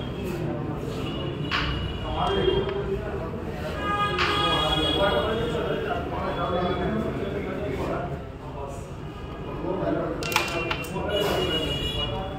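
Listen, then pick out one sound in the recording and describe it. A striker flicks and clacks against wooden pieces on a board.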